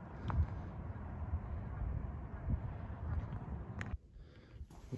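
Wind blows across an open outdoor space.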